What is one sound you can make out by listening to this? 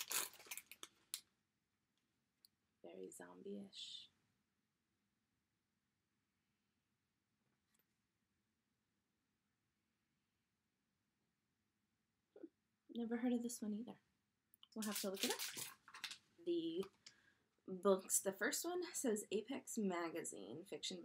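A young woman talks calmly and close to a microphone, with long pauses.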